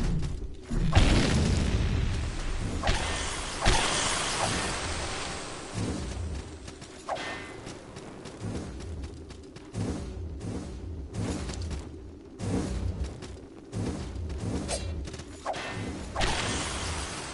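Sword swings whoosh sharply in a game.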